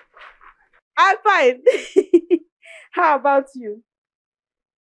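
A young woman laughs on a phone, close by.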